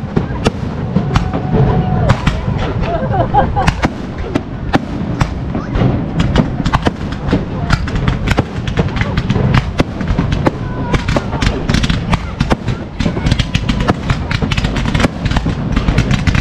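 Fireworks pop and crackle overhead.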